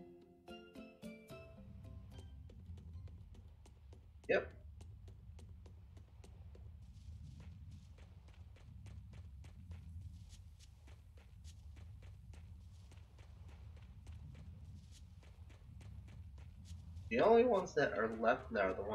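Footsteps patter quickly on wood and grass.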